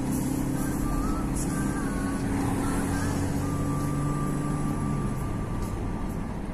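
A car engine hums steadily, heard from inside the car.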